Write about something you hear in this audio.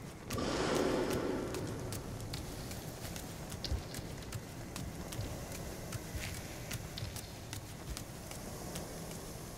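Footsteps tap steadily on stone stairs.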